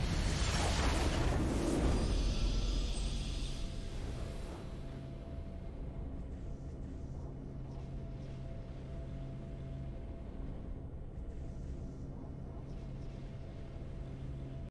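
A triumphant fanfare swells and then holds a soft, steady chord.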